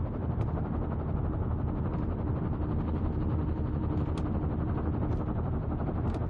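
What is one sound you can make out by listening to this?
Embers crackle softly.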